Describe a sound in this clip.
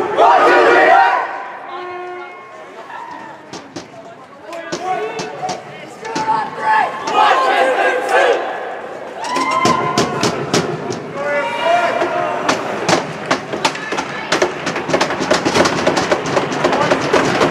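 Young men shout and cheer in a large echoing rink.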